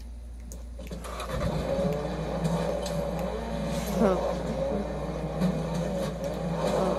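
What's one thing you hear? A car engine in a video game revs and hums through a television speaker.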